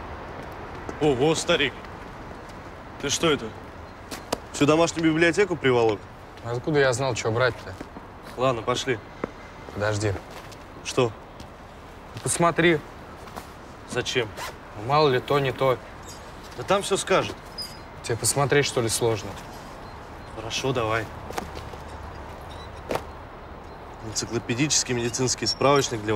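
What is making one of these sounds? A young man speaks calmly close by.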